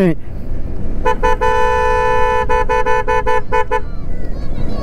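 A motorcycle horn beeps in a quick series of short honks.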